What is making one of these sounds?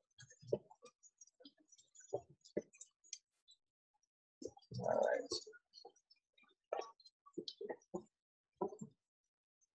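A thick sauce plops and drips into a bowl.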